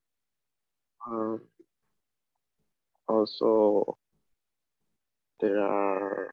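A young woman speaks slowly and clearly through an online call.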